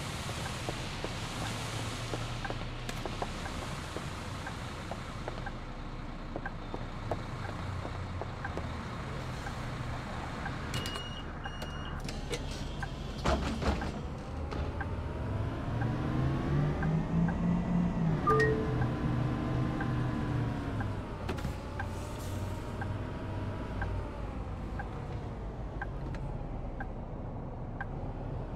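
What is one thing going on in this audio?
A bus engine drones steadily, rising and falling in pitch as the bus speeds up and slows down.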